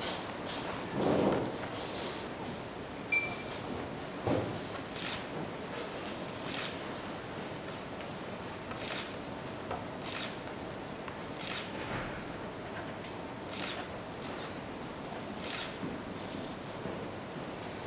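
Pens scratch on paper.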